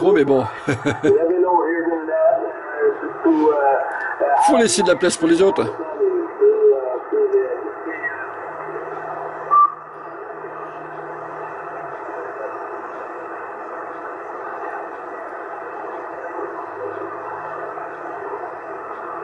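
A radio receiver hisses with steady static through its loudspeaker.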